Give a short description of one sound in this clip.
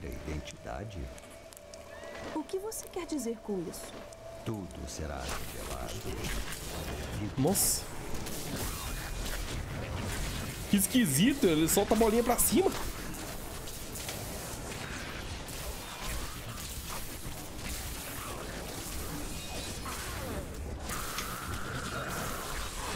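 Spells and blows crash and crackle in a game's fight.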